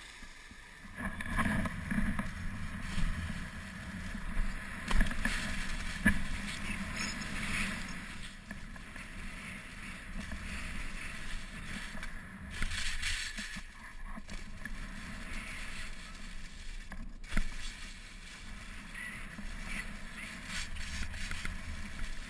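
Wind rushes past a moving skier.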